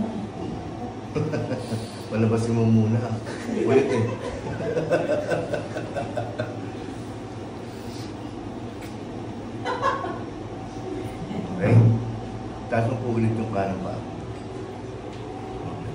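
A woman groans and laughs close by.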